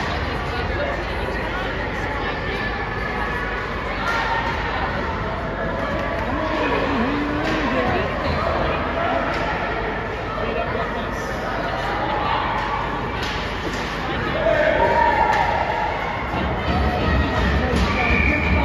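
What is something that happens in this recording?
A crowd murmurs and calls out in a large echoing arena.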